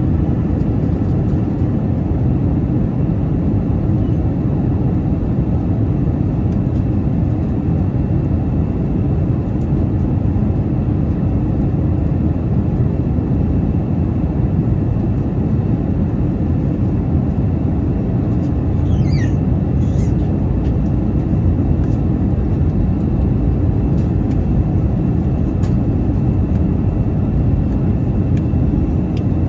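A jet engine roars steadily and loudly in a low, constant rumble.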